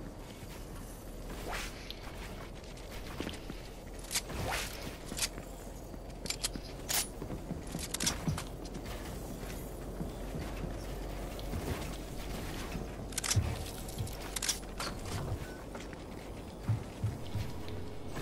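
Building pieces snap into place in quick bursts of clicks.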